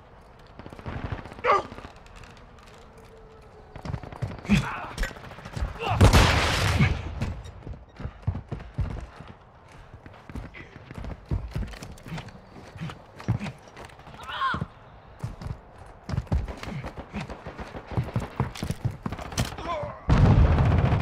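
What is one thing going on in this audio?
Footsteps run quickly on hard ground.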